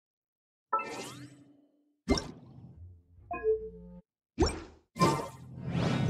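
Menu chimes click sharply several times.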